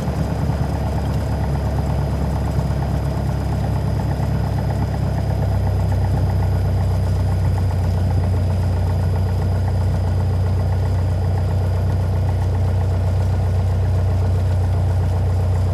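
A small propeller plane's engine drones loudly and steadily from inside the cockpit.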